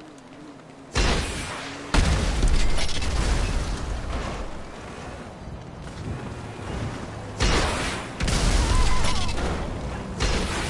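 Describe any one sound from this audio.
Gunshots fire in loud bursts.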